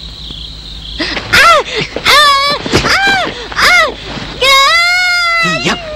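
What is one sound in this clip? A young woman screams loudly in pain.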